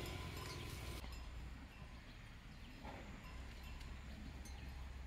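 A cow tears and munches grass.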